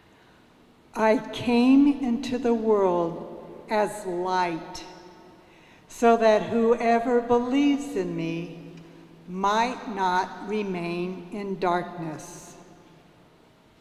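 An elderly woman reads out calmly through a microphone in an echoing room.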